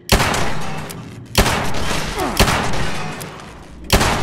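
A robot's parts clatter and ring as it is hit.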